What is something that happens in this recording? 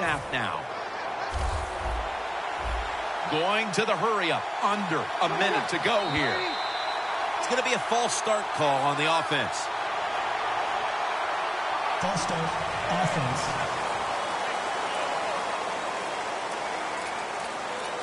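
A large crowd roars steadily.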